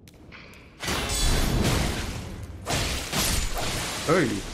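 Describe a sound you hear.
A sword slashes and strikes hard in a fight.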